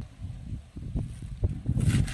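A knife cuts through a crisp cabbage stalk.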